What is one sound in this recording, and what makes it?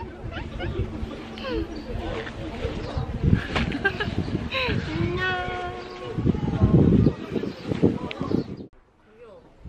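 Two young women talk cheerfully close by.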